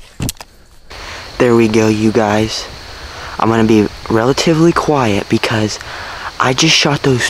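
A young man talks quietly and close up.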